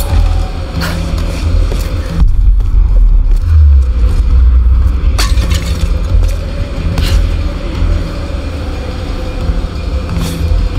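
Waves surge and rumble against rocks far below.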